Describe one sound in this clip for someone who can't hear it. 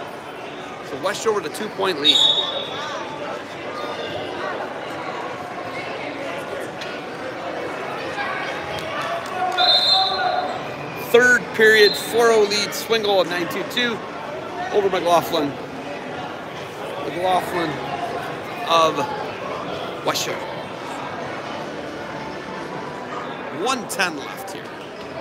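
Spectators shout out loudly in a large echoing hall.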